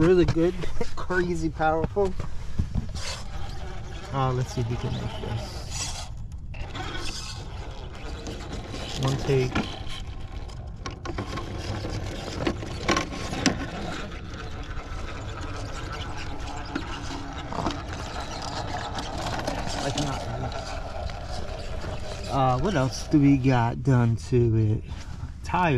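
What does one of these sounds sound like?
Rubber tyres scrape and grip on rock.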